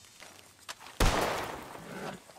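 A gunshot cracks loudly outdoors.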